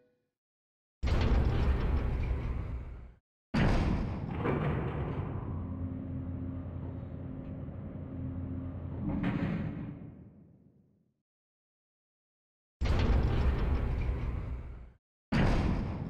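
Heavy metal elevator doors slide open with a loud rumbling clatter.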